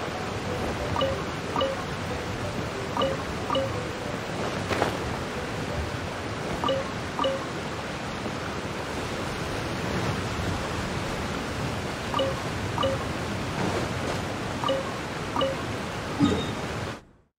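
A bright chime rings as an item is picked up.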